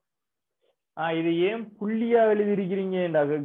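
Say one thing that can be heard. A young man speaks with animation into a clip-on microphone, close by.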